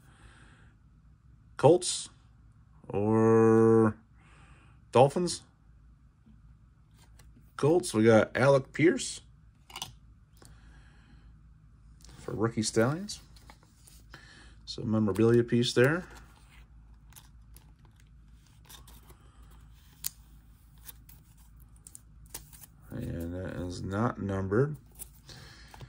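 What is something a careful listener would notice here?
Trading cards slide and rustle softly between hands.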